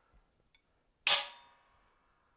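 Metal parts clink together on a steel plate.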